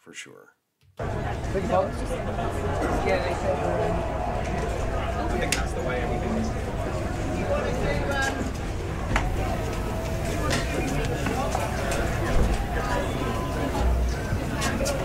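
People chatter and walk on a busy street outdoors.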